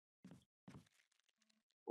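Footsteps tread on a wooden floor.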